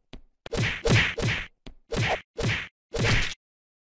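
A game character bursts apart with a short splatting sound.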